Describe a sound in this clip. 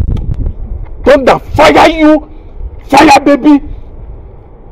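A man speaks loudly and forcefully, close by.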